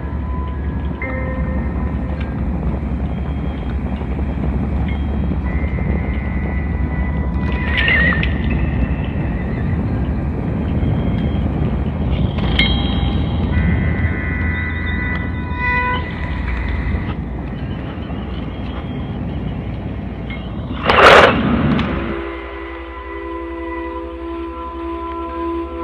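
Electronic music plays from synthesizers, with a deep pulsing bass and bright tones.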